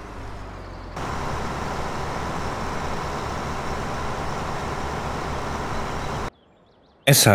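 A combine harvester engine drones loudly.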